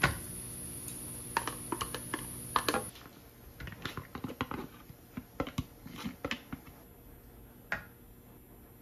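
Food drops softly into a glass bowl.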